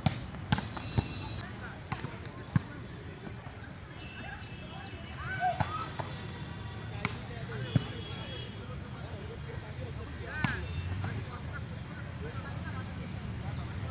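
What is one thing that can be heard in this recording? Young players call out and shout to each other outdoors.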